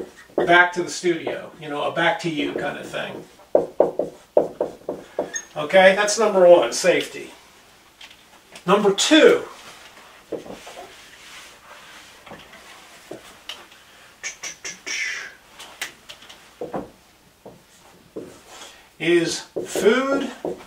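A middle-aged man speaks clearly and steadily, close by.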